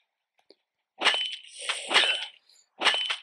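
A character hits zombies with quick, sharp blows.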